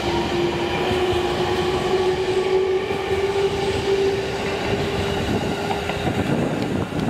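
A train's motor whines with a steady tone.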